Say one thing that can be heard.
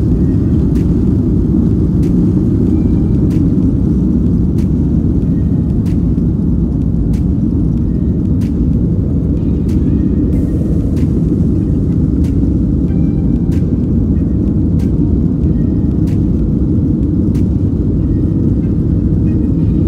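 Jet engines roar steadily inside an aircraft cabin during a climb.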